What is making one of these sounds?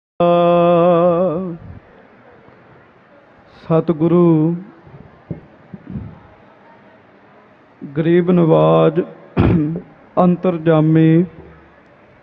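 A man's voice chants loudly in long, drawn-out phrases.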